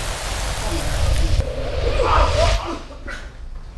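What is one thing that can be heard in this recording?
A man falls heavily onto a leather sofa with a thud.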